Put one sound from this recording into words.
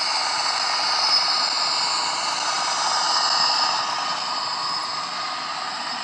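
A model train's motor hums steadily as it rolls along the track.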